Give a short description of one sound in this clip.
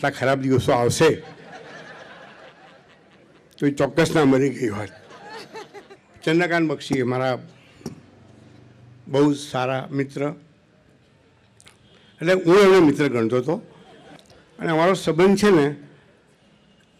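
An elderly man speaks slowly into a microphone, in short phrases with pauses.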